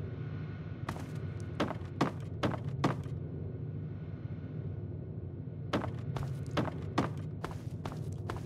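Footsteps thump on creaky floorboards.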